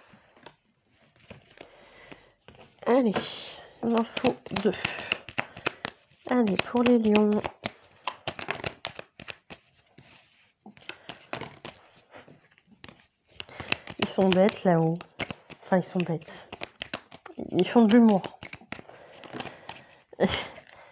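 Playing cards rustle and slap softly as they are shuffled by hand.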